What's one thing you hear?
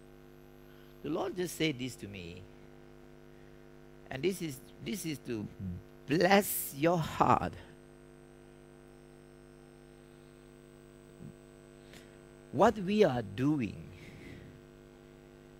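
A man speaks calmly in short phrases with pauses, in a room with some echo.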